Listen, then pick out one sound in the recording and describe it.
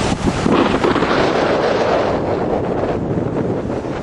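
Waves break on a sandy beach.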